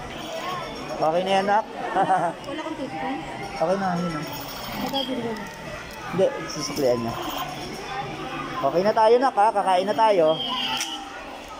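A toy gun plays loud warbling electronic sounds close by.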